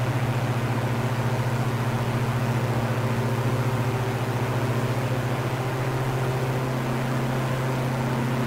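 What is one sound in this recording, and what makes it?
A twin propeller engine drones steadily.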